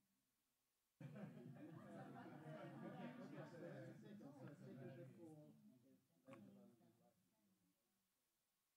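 A group of young men and women chatter nearby.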